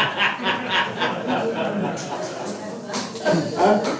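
An elderly man laughs heartily.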